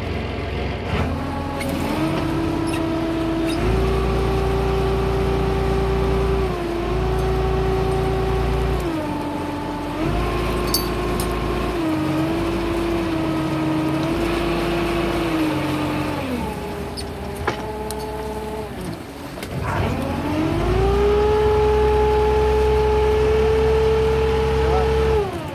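A motorized line hauler whines steadily, its pitch rising and falling as it speeds up and slows down.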